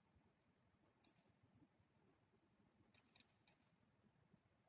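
Game pieces click sharply as they are moved.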